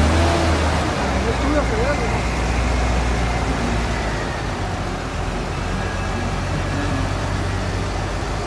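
A tractor's diesel engine rumbles loudly nearby as it drives past.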